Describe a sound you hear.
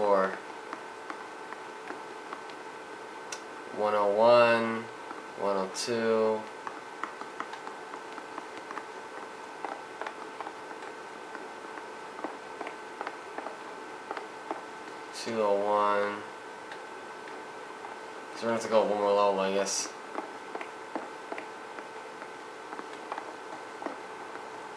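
Footsteps tap quickly across a hard floor and up stairs.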